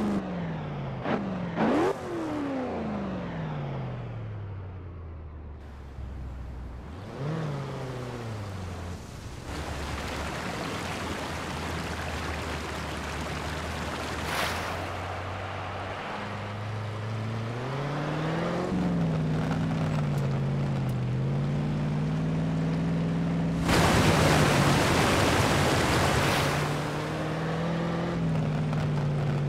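An engine revs up and down.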